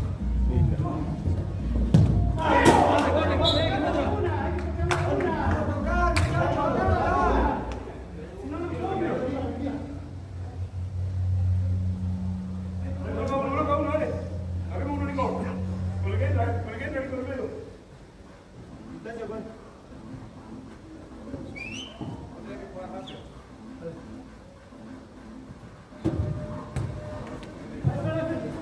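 Men shout and call out to each other across an indoor pitch.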